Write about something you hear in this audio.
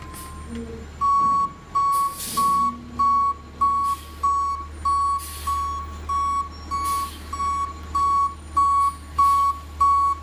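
A garbage truck's reversing alarm beeps loudly and steadily.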